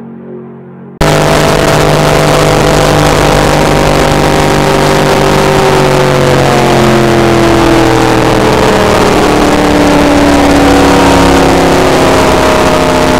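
A car engine roars loudly from inside the cabin, its pitch slowly falling.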